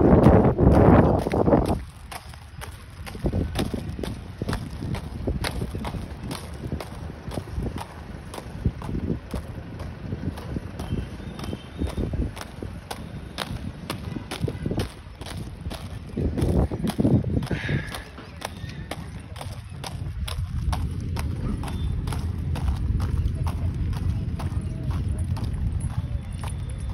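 Plastic roller skate wheels rumble and click over rough asphalt.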